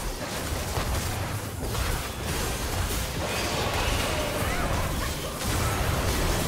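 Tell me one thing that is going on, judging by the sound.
Magic spell effects crackle and whoosh in a busy video game battle.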